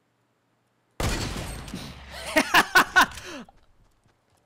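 Rifle shots ring out in quick succession.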